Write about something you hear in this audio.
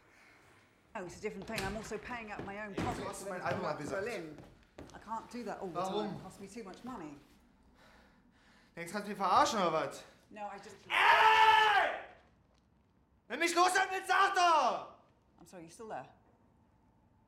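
A young woman speaks into a phone, upset and raising her voice at times.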